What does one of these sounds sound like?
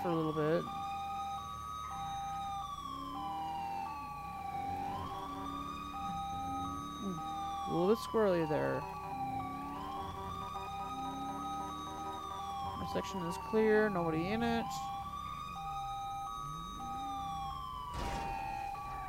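A police siren wails, rising and falling in a slow repeating cycle.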